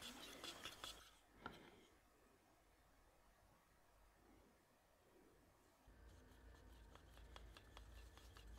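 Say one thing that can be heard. A wooden stick stirs thick paint in a metal tin, scraping softly.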